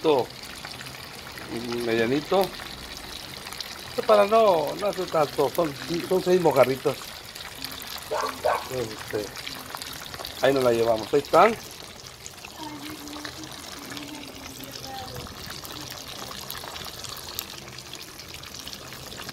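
A wood fire crackles under a pan.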